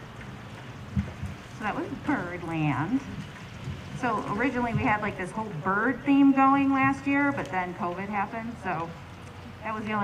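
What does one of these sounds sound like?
A woman speaks calmly into a microphone over a loudspeaker.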